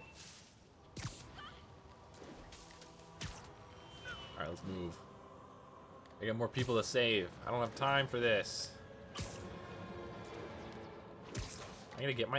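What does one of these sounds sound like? A rope-like swing whooshes through the air.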